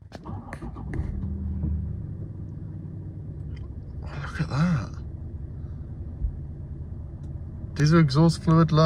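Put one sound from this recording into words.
A car engine starts and idles with a steady low hum.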